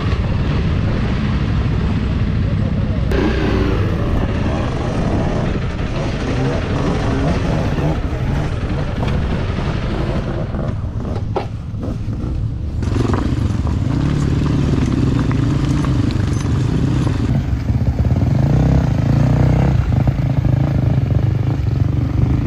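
A motorcycle engine runs and revs close by.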